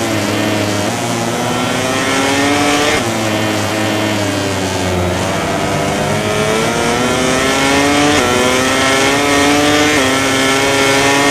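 A motorcycle engine revs high, rising in pitch and dropping sharply at each gear change.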